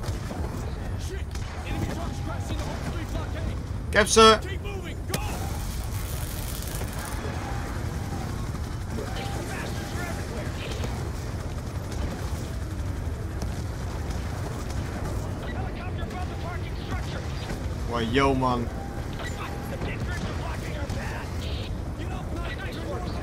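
Gunfire and explosions rumble.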